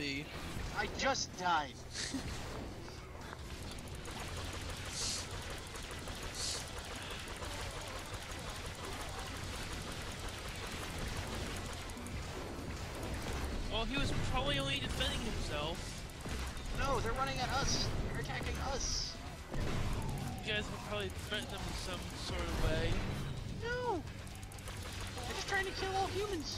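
Magic bolts zap and crackle in quick bursts.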